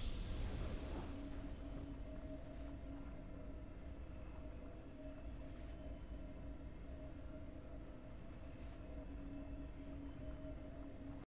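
A triumphant game fanfare plays softly with sustained tones.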